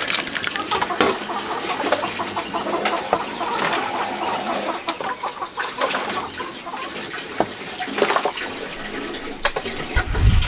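Liquid splashes as it is stirred in a pot.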